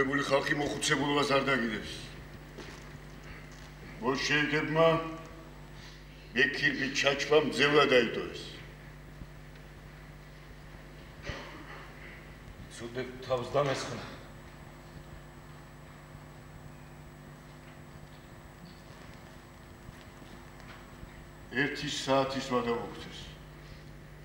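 A man speaks dramatically in bursts with long pauses.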